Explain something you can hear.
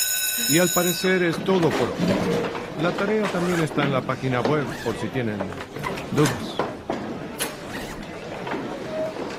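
A crowd of young men chatter.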